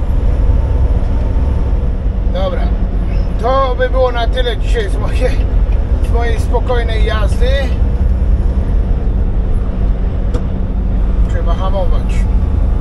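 A truck engine drones steadily, heard from inside the cab.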